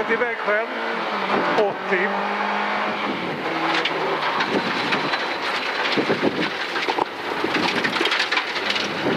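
A rally car engine roars at high revs, rising and falling through gear changes.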